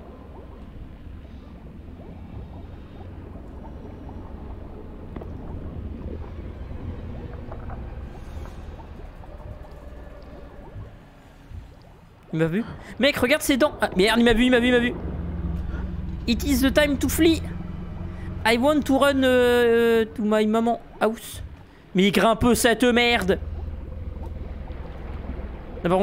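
Air bubbles gurgle and rumble underwater.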